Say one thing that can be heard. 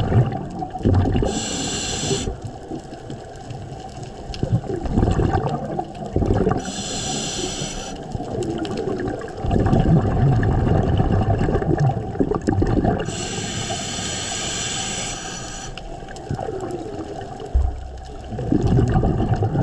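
Water rushes and rumbles in a muffled way underwater.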